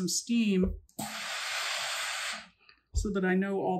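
A steam iron hisses out a burst of steam.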